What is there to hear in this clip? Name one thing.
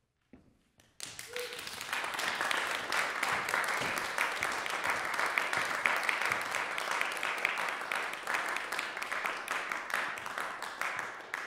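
An audience claps in a large echoing hall.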